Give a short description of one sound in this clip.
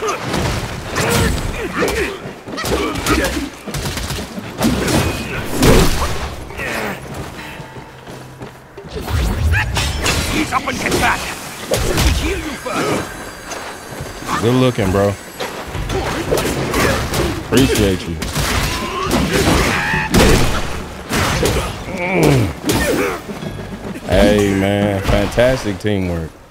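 Swords clash and ring with sharp metallic hits.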